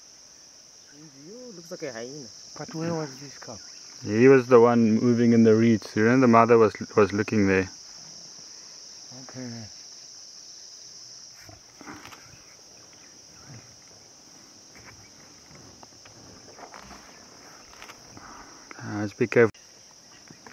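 Lion cubs call out with loud, pitched mewing cries.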